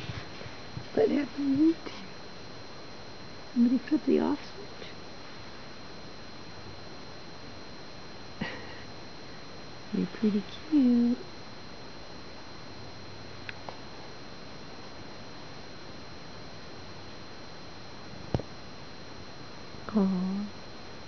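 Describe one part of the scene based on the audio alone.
A small kitten mews in short, high calls close by.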